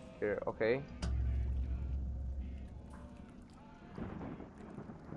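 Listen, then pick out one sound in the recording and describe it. Water splashes and sloshes in a basin.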